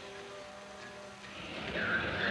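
A train rolls along the tracks.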